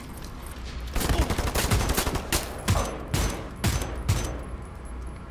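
A rifle fires in bursts.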